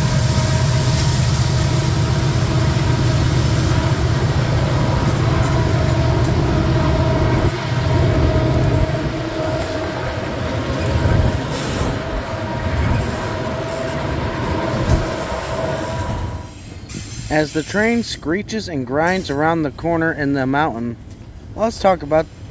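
A long freight train rumbles and clanks past close by.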